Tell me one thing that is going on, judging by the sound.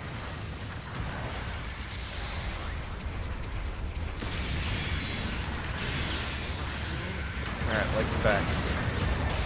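A deep mechanical rumble drones steadily.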